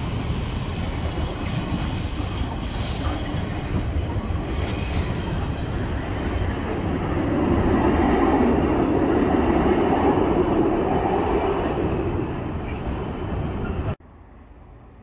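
A freight train rumbles and clatters loudly past close by.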